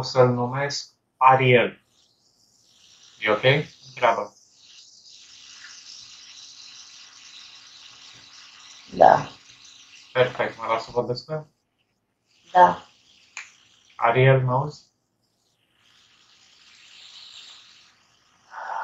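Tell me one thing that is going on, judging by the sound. A young man speaks casually over an online call.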